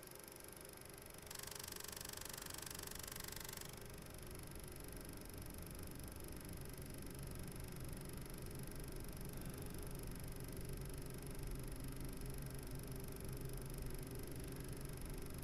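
A film projector whirs and clatters steadily.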